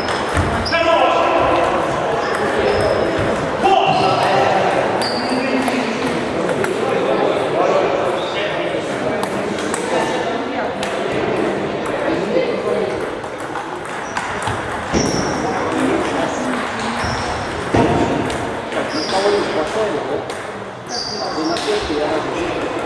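Many people talk in a large echoing hall.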